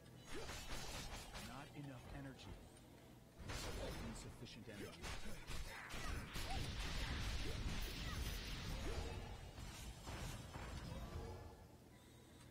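Magic spells whoosh, crackle and burst in a video game.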